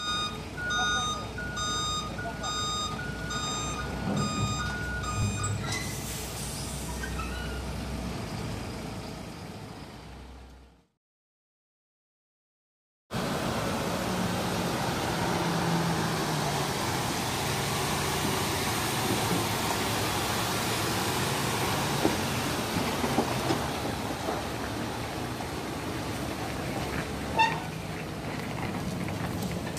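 A heavy truck engine rumbles nearby.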